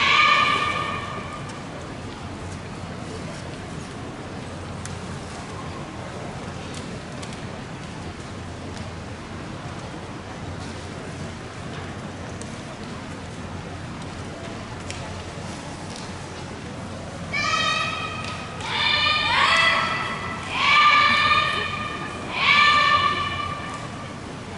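Young women shout loud, sharp calls in a large echoing hall.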